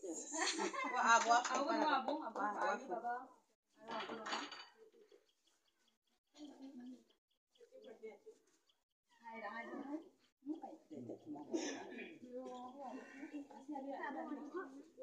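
Several women talk and chatter close by, with animation.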